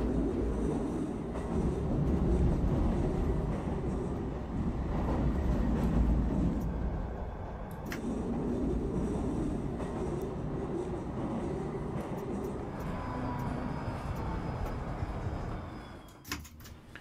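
A tram rumbles along rails.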